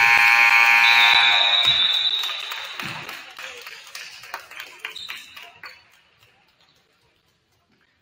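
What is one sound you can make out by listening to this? Young men shout and cheer across the gym.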